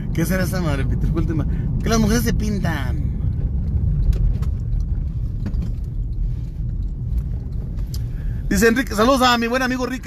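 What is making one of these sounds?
A car engine hums with road rumble from inside a moving car.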